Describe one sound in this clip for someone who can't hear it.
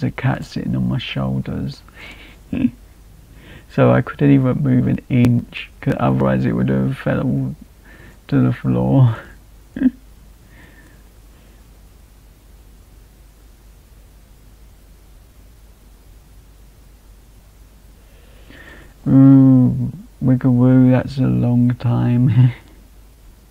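A young man speaks casually and close to a microphone, with pauses.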